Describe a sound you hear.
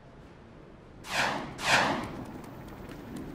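Electricity crackles and zaps in two sharp bursts.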